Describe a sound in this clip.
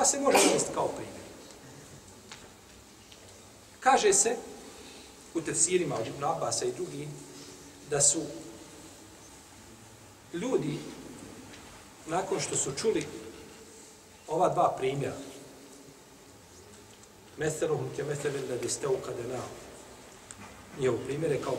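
A middle-aged man speaks calmly into a close microphone, in short phrases with pauses, in a reverberant room.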